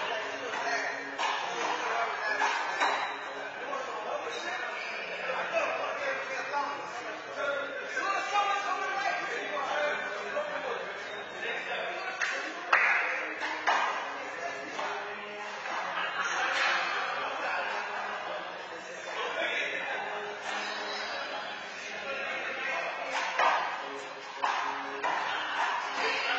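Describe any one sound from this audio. Men talk with animation in an echoing indoor court.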